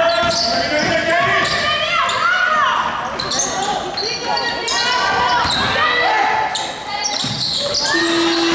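Sneakers squeak sharply on a basketball court in a large echoing hall.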